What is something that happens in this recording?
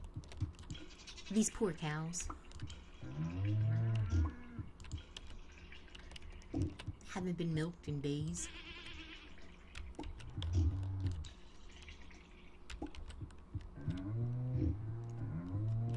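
A cow moos in a low voice.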